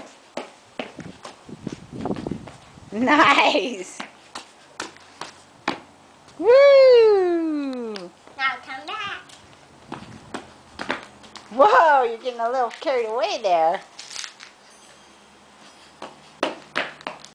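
A young child's sneakers slap and stamp on concrete while jumping.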